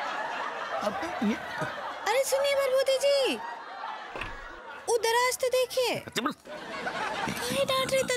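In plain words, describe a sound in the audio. A young woman speaks anxiously and with animation.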